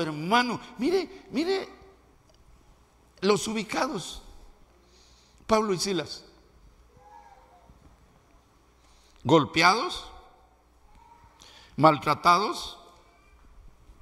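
An older man preaches with animation through a microphone, in loud bursts with pauses.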